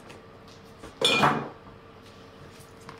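A cutting board thuds onto a table.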